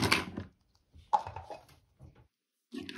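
Small plastic toy pieces clatter onto a hard surface.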